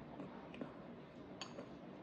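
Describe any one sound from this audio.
A plate clinks on a hard surface.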